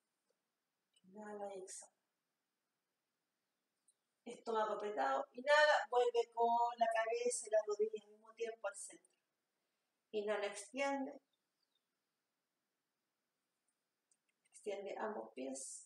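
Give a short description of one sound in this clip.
A woman speaks calmly and slowly, giving instructions close to the microphone.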